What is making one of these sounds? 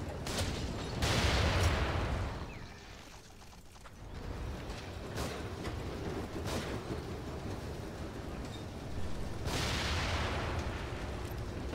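A fiery explosion bursts with a roar.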